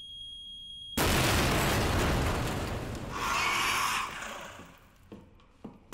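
A rocket explodes with a loud, booming blast.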